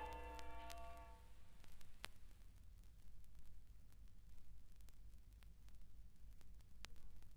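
A vinyl record crackles and pops.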